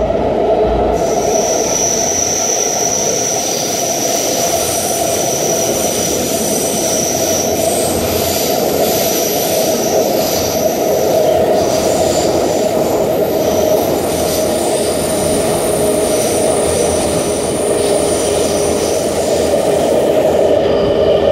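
Train wheels squeal with a high, steady whine.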